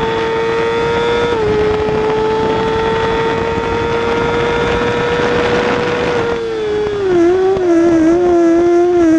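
A motorcycle engine screams at high revs and shifts gears.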